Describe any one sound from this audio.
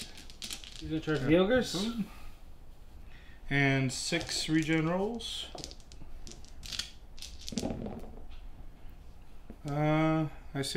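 Dice rattle and clatter onto a table.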